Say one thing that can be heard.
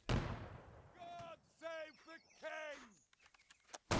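Muskets fire in a loud volley.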